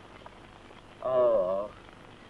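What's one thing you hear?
A woman cries out loudly and briefly.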